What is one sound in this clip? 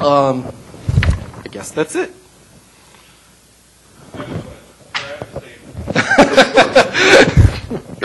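A man speaks into a microphone in a large room, pausing between phrases.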